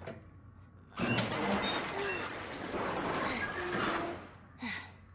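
A metal roller shutter rattles loudly as it is forced up.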